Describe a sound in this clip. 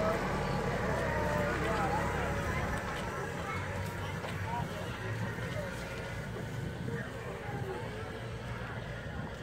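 A group of people chatter on a hay wagon.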